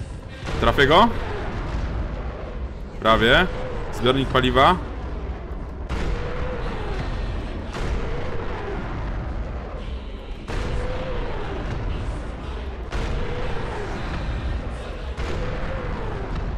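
A tank cannon fires heavy booming shots again and again.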